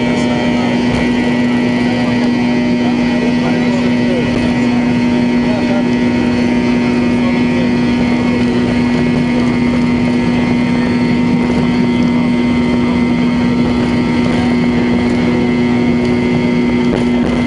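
An airliner's wheels rumble on a runway.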